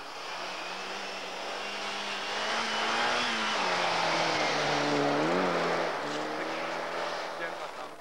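Tyres spray snow as a car slides through a bend.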